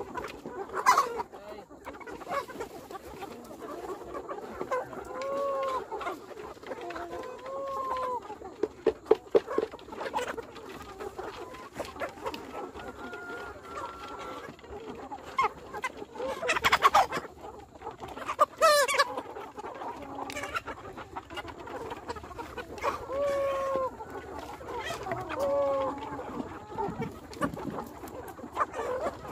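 A large flock of chickens clucks and squawks outdoors.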